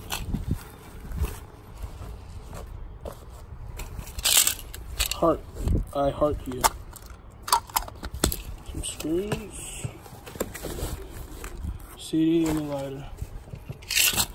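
Fabric rustles as a bag is rummaged through.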